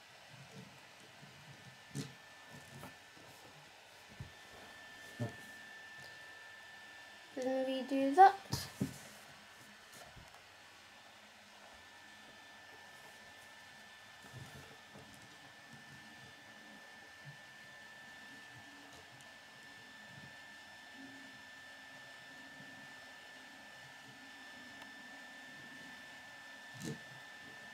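Small plastic wheels roll softly across a wooden table.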